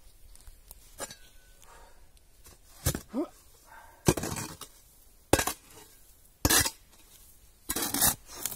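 A shovel blade scrapes and chops into dry soil.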